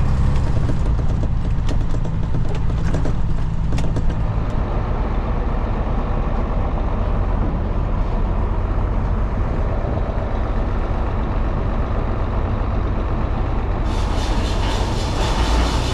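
A tractor engine rumbles steadily and close by.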